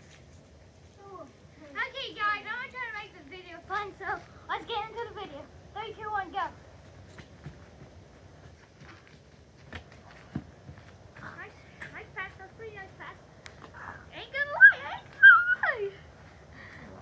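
A young boy talks with animation nearby, outdoors.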